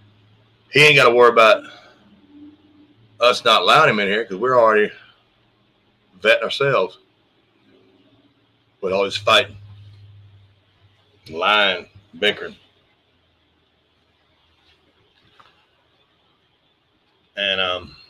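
A middle-aged man speaks calmly in short phrases through a microphone, heard as if over an online call.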